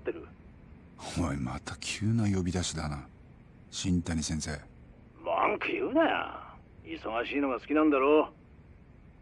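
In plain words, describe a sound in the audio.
A young man speaks tensely into a phone, close by.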